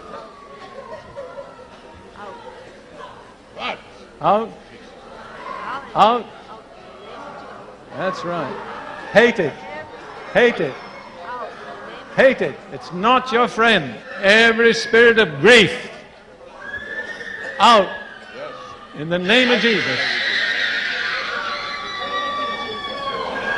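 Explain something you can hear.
An elderly man preaches loudly and forcefully into a microphone in a large echoing hall.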